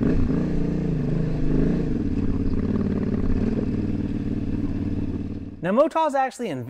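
A motorcycle engine rumbles steadily while riding over rough ground.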